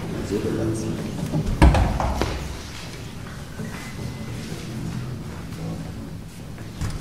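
Orchestra players play scattered notes as they tune up in a large, echoing hall.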